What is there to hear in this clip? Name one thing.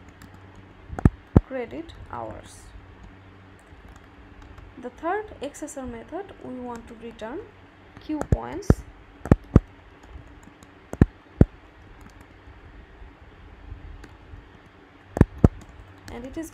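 Keys clack on a computer keyboard in short bursts.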